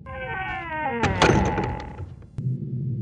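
A heavy door slams shut with a loud echoing bang.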